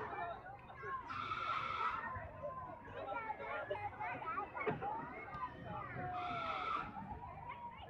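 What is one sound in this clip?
Children chatter and call out nearby.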